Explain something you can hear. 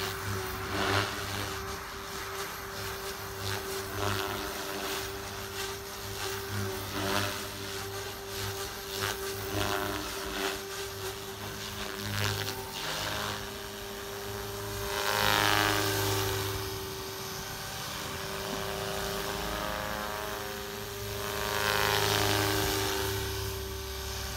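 A model helicopter's motor whines steadily overhead, swelling louder as it passes close.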